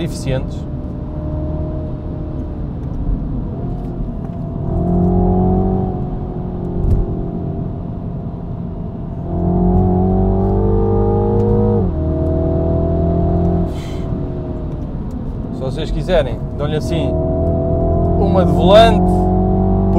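A car engine hums and revs up and down through the gears.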